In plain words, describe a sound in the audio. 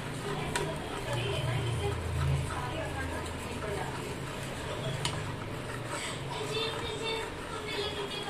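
A metal spatula scrapes and stirs in a pan.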